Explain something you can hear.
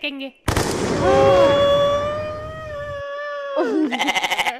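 A young woman exclaims in surprise close by.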